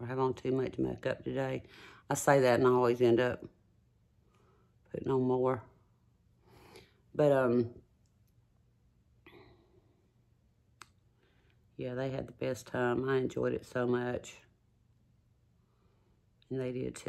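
An older woman talks calmly and close to a microphone, in short bursts.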